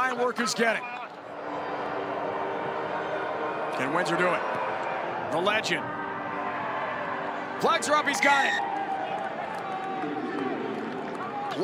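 A crowd cheers and murmurs in an open stadium.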